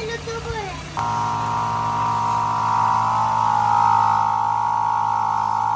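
An electric air pump hums steadily.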